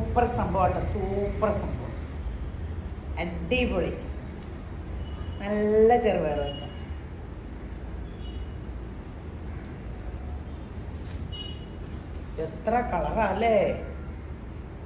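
A woman speaks cheerfully and with animation close by.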